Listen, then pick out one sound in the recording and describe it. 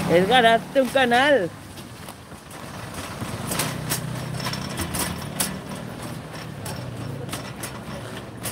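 A shopping cart rattles as it rolls over pavement.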